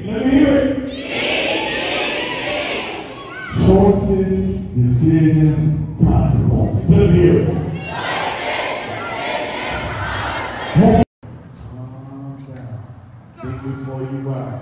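A man calls out loudly through a loudspeaker in a large echoing hall.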